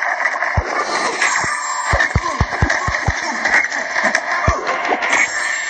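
Electric zaps crackle during the fight.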